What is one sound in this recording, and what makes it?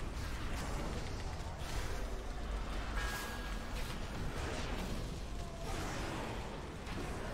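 Spell and combat effects from a game crackle and whoosh.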